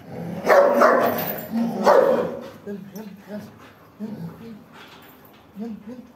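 Dogs growl and snarl as they tussle.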